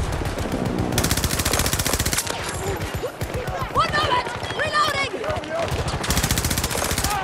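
Rapid gunfire rattles in bursts close by.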